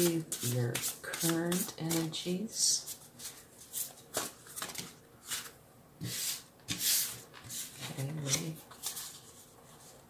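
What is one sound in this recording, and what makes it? Cards shuffle with a soft, quick riffling.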